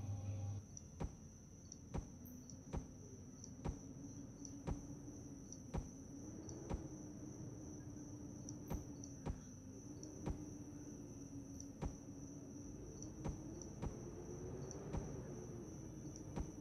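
Short sharp clicks sound at a steady pace as blocks are placed.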